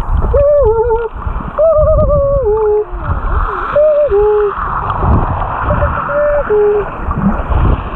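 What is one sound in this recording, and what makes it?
Dolphins whistle and squeak underwater.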